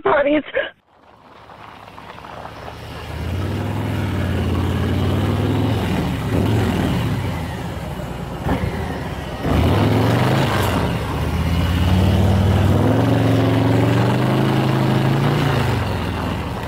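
A motorcycle engine idles and revs up close.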